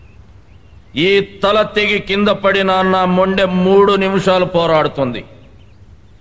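A man speaks firmly and sternly.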